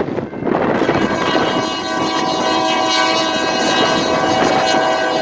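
A locomotive horn blares as the train approaches.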